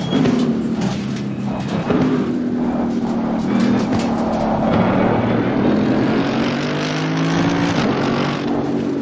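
A racing car engine roars loudly, its pitch rising and dropping as it shifts gears.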